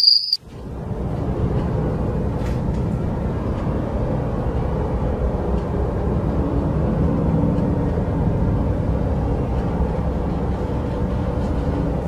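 A fridge door slowly opens.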